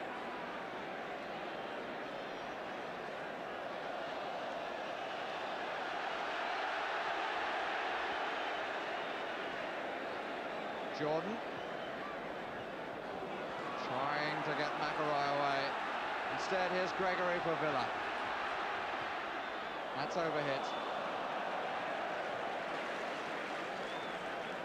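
A large crowd roars and murmurs steadily in a stadium.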